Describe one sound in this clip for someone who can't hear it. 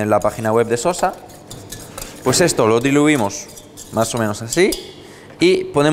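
A whisk scrapes and rattles against a metal bowl.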